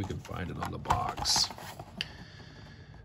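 Cardboard rustles as a box is handled.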